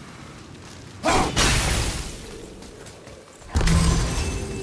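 An axe whooshes through the air with a loud burst.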